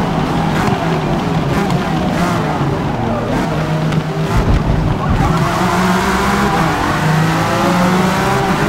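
A racing car engine roars and revs, rising and falling in pitch as gears shift.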